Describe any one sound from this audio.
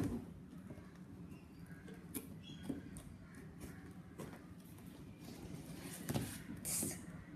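Scissors snip through cardboard.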